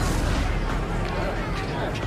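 A burst of energy blasts with a sharp crackle.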